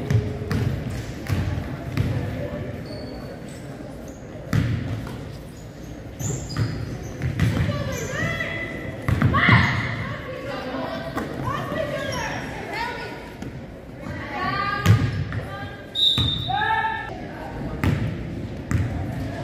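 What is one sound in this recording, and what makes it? A basketball bounces on a wooden floor with echoing thumps in a large hall.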